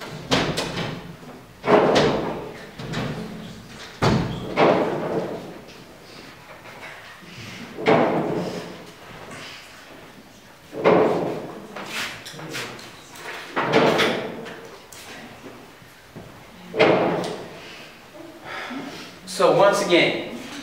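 An elderly man lectures with animation in a room with a slight echo.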